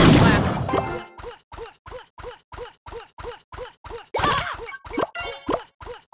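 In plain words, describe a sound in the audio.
A game tower fires shots in a quick, steady rhythm.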